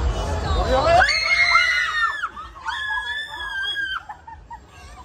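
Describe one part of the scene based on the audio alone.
Young women shriek and scream loudly nearby.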